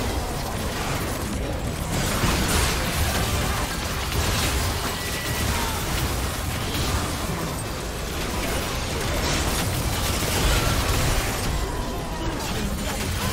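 Magic spell effects whoosh and burst in a game battle.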